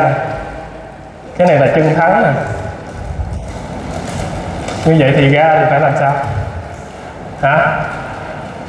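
A man speaks with animation through a loudspeaker in a large echoing hall.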